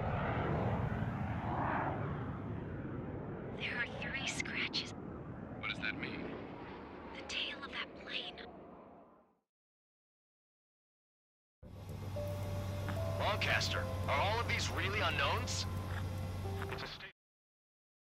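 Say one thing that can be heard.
A jet aircraft engine roars steadily.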